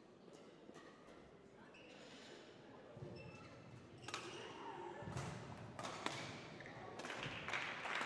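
Rackets strike a shuttlecock in a rally.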